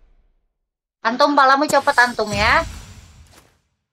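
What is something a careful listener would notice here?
A short bright musical chime sounds.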